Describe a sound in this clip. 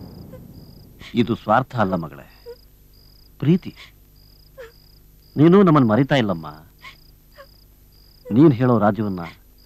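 A middle-aged man speaks softly and gently, close by.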